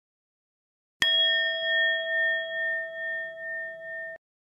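A bell chimes once and slowly rings out.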